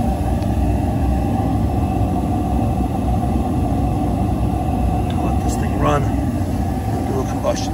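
Gas burners roar steadily with a low rumble.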